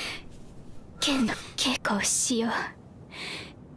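A young man speaks softly and sadly.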